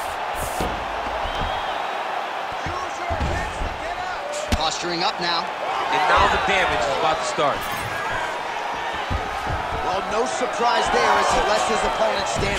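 A large crowd cheers and roars steadily in an echoing arena.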